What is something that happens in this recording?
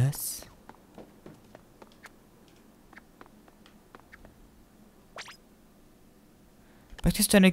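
Light footsteps patter softly.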